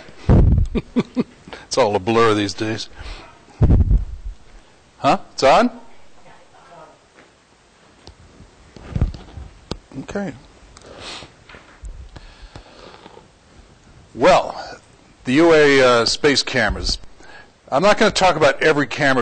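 An elderly man speaks through a microphone in a large echoing room, pausing between phrases.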